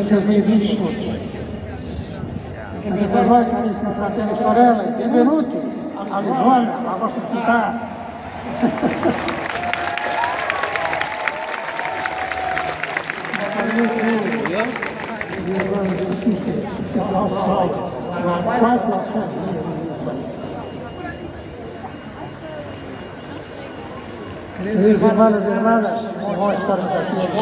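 A large crowd murmurs and chatters.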